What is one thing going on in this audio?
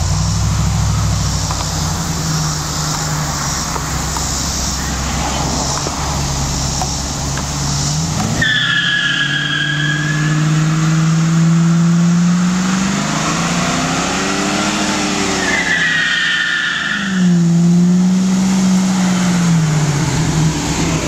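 A car engine rumbles and revs hard, rising and falling in pitch.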